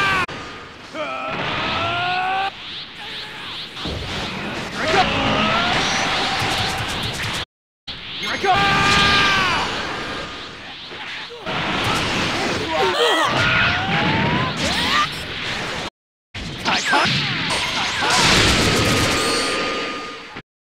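Impacts boom and crackle.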